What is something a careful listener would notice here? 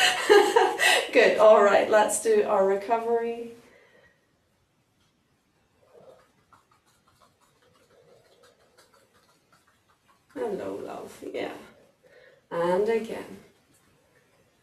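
A woman speaks calmly and clearly, close by, giving instructions.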